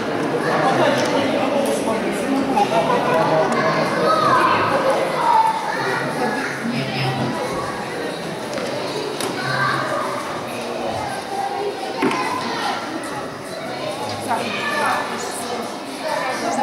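Children chatter and call out nearby in a large echoing hall.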